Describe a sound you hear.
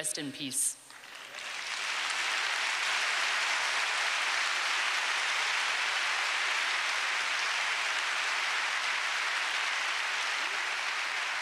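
A large crowd applauds steadily in a large hall.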